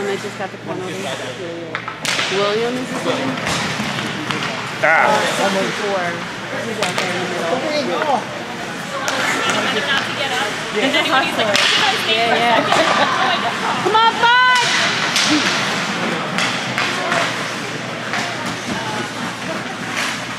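Men and women nearby talk and shout excitedly in an echoing rink.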